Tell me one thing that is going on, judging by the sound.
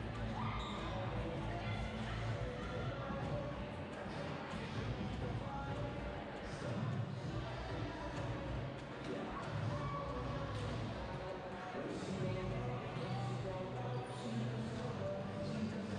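Voices of a crowd murmur and chatter, echoing in a large hall.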